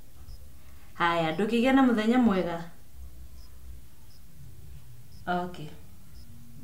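A woman speaks on a phone nearby, calmly.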